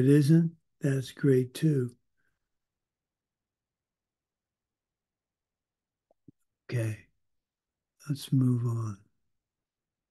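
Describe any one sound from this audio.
An elderly man speaks calmly in short bursts over an online call.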